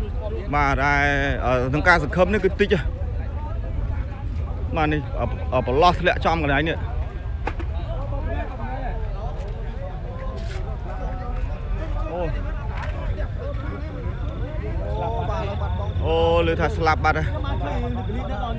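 Men talk loudly and excitedly close by.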